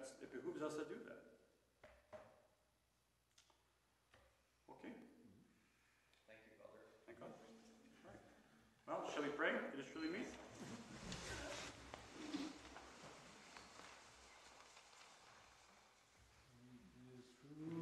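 A man reads aloud in a calm, chanting voice in an echoing hall.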